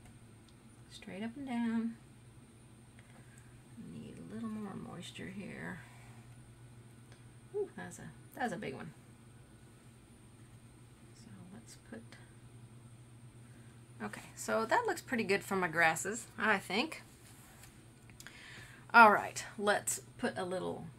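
A woman talks calmly and clearly into a close microphone, in short bursts.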